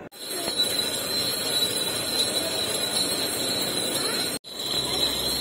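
A juice machine grinds and whirs loudly.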